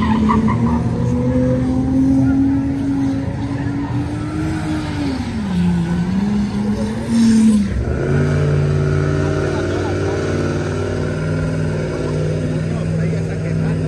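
Tyres squeal on the road as a car spins.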